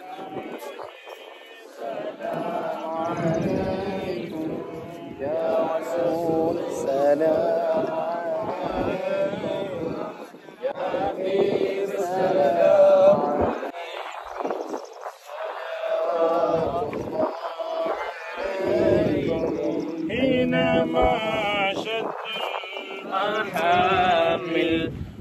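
A crowd of men murmur and talk close by, outdoors.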